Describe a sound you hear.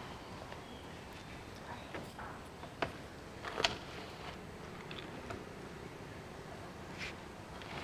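A woman talks quietly to people at a table nearby.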